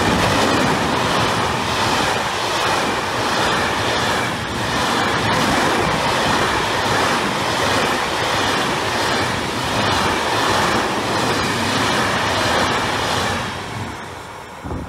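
Train wheels clatter over rail joints.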